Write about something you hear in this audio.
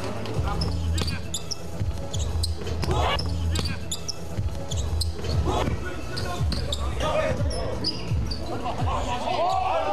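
Sneakers squeak sharply on a hard court floor.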